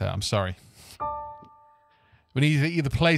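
A piano keyboard plays a few notes.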